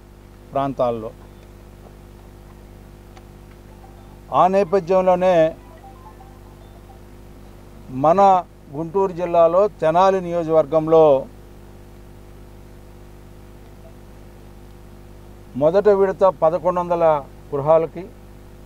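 A middle-aged man speaks forcefully into a clip-on microphone, in short bursts with pauses.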